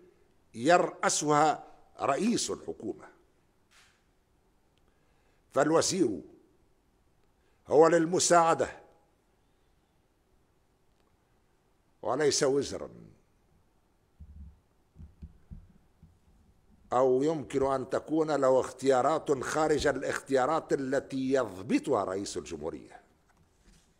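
A middle-aged man gives a formal speech into a microphone, in slow phrases with long pauses.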